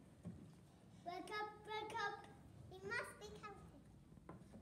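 A young child speaks a line loudly in a room with some echo.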